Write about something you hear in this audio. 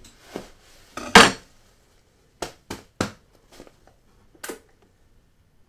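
Objects knock and clatter sharply on a wooden table.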